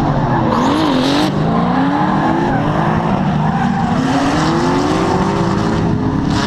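Car engines rev hard and roar in the distance.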